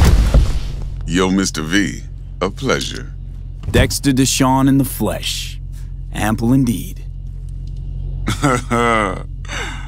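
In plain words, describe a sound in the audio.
A deep-voiced man speaks calmly and close by, with pauses.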